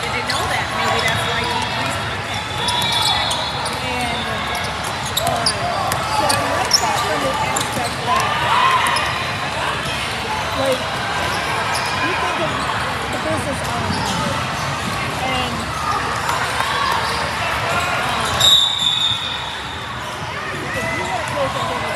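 A crowd of players and spectators talks and calls out in a large echoing hall.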